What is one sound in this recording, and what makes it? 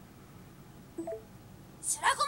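A short electronic chime sounds.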